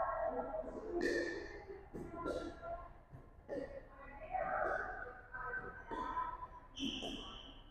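A paddle hits a ball with sharp pops that echo in a large hall.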